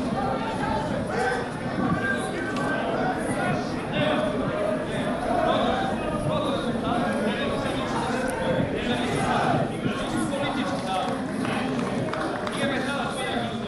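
Several men talk loudly close by, outdoors.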